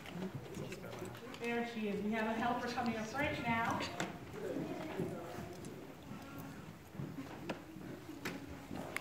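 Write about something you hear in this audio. A woman sings into a microphone in an echoing hall.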